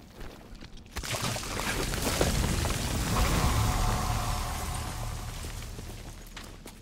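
A heavy crash rumbles and booms as a large creature is crushed.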